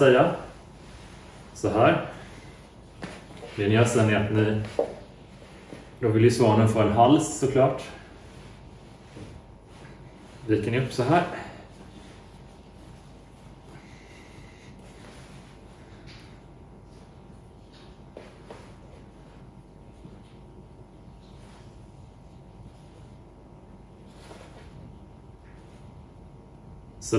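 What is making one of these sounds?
Soft cloth rustles as it is folded.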